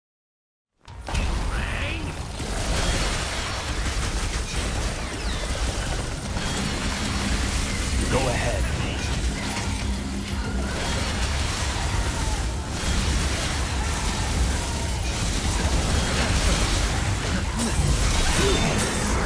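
Blades slash and clash rapidly in a fierce fight.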